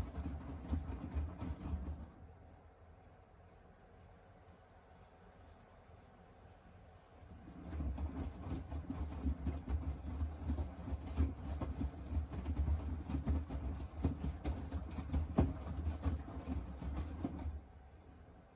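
Wet laundry tumbles and sloshes inside a washing machine drum.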